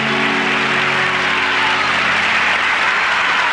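A woman holds a sung note to its end.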